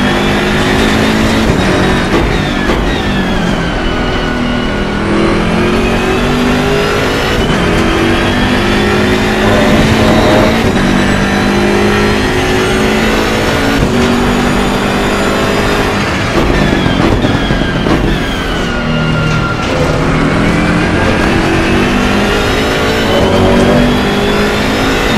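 A racing car engine roars loudly, rising and falling in pitch as it shifts gears.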